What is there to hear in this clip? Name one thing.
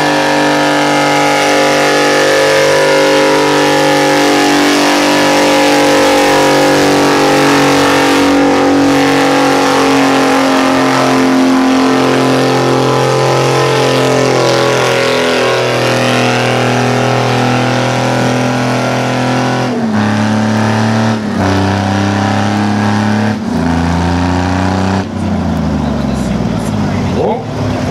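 A tractor engine roars loudly close by, its pitch shifting up and down.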